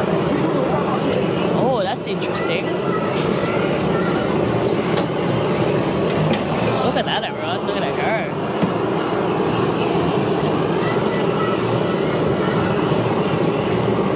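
A gas torch roars steadily close by.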